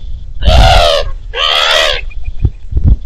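Birds call loudly nearby.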